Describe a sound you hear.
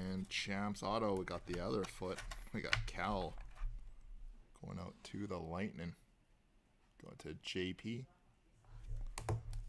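A plastic case clicks and taps in hands.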